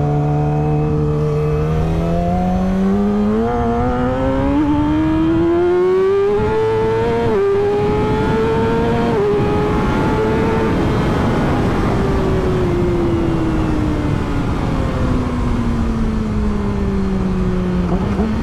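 A motorcycle engine revs up hard through the gears, then slowly winds down.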